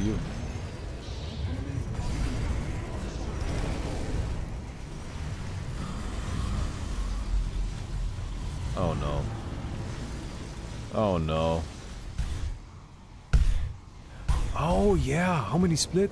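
Game spell effects whoosh and crackle in a busy battle.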